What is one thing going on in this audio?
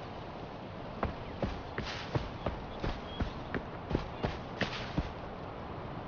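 Footsteps thud steadily through grass.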